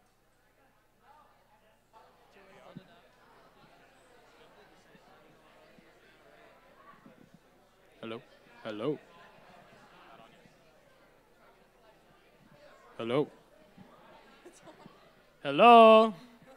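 People in an audience murmur quietly.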